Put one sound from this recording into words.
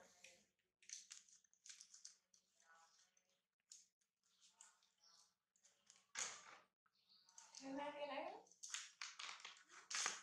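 A disposable diaper crinkles as hands unfold it.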